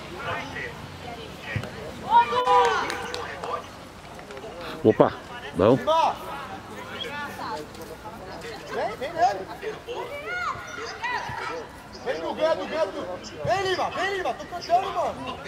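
Boys shout and call out to each other across an open field.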